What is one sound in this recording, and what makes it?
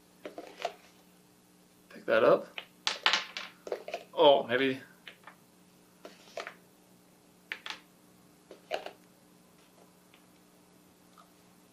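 Plastic cups tap and clack on a wooden table.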